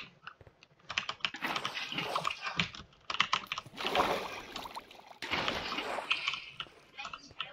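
Water splashes and pours.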